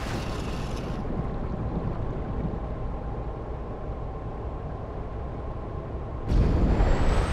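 Muffled water rumbles around a car moving underwater.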